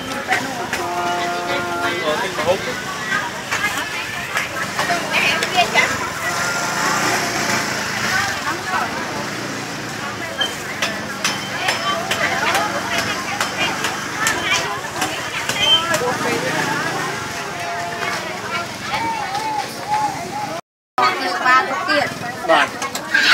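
A crowd of adult men and women chatter close by.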